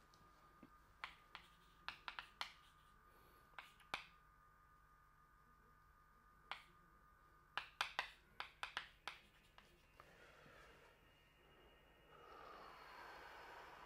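Chalk taps and scratches sharply on a blackboard.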